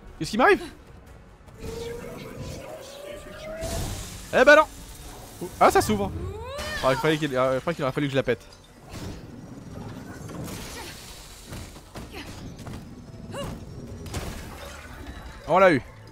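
Blows and energy blasts clash in a fast game fight.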